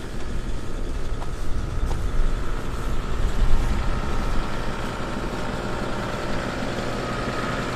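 Boots crunch on wet gravel and sand.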